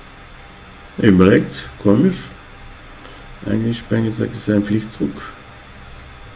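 An older man speaks calmly and closely into a microphone.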